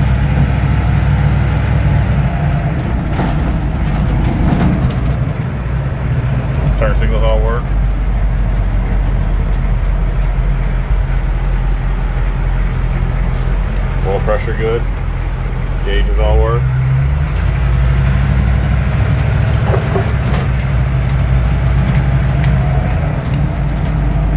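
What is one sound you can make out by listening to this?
A heavy diesel truck engine rumbles steadily while driving.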